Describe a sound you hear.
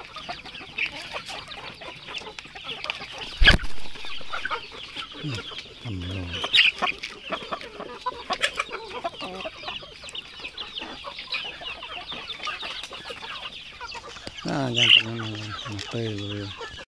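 Many chickens cluck and chirp close by.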